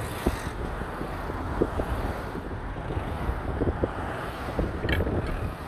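Road noise rumbles steadily from inside a moving car.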